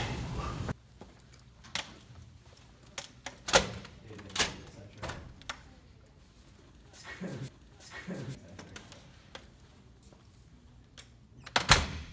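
Crutches tap on a hard floor.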